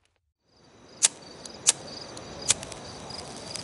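A lighter clicks sharply several times.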